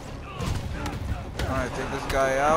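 Punches land with heavy thuds in a fight.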